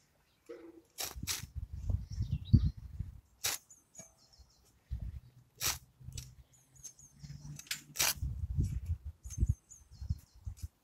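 A spade scrapes and cuts through turf and earth.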